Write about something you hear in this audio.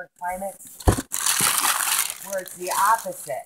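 Wrapping paper rustles and crinkles close by.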